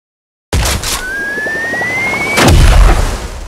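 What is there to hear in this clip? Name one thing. A game sound effect rises in pitch and ends in a loud burst.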